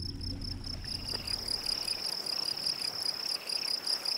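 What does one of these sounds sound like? Water trickles steadily in a small stream.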